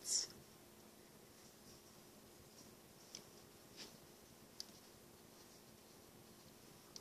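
A small metal hook clicks faintly against a plastic loom.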